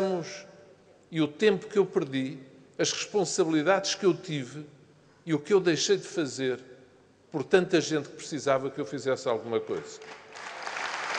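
An older man speaks forcefully through a microphone in a large hall.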